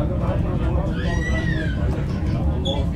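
Train wheels squeal on the track.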